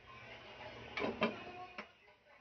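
A glass lid clatters onto a metal pot.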